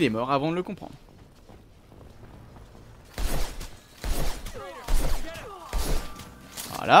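Heavy punches land with dull thuds.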